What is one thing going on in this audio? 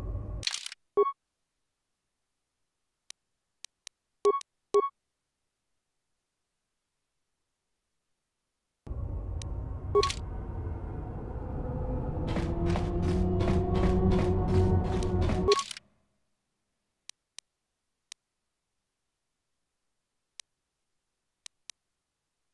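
Short electronic clicks and beeps sound now and then.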